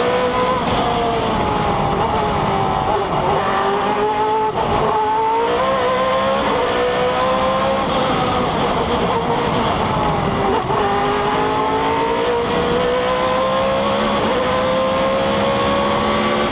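A racing car engine roars close by, its pitch rising and falling with the gear changes.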